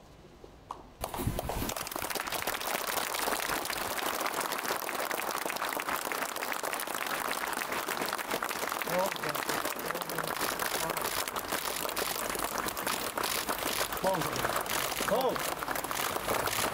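A crowd of soldiers claps steadily and loudly.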